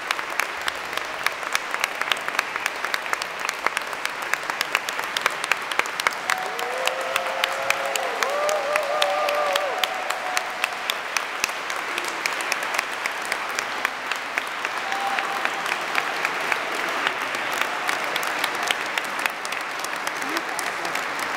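A large audience claps steadily in an echoing hall.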